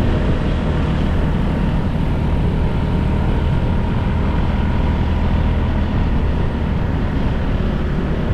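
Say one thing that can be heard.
A motorcycle engine hums steadily up close as it rides along a road.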